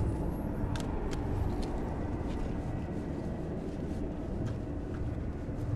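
A small animal scurries across dry grass.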